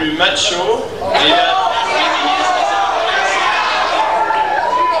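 A young man speaks with animation into a microphone, heard through loudspeakers in a large hall.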